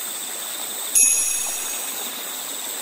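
A bright electronic chime rings out as a game is saved, then fades.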